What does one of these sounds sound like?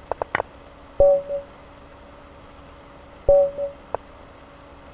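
A short electronic chime sounds twice.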